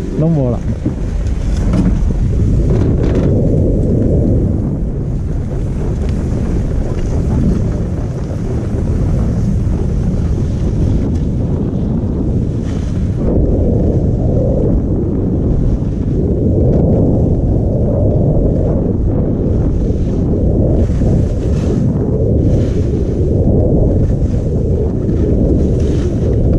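Skis scrape and hiss across packed snow.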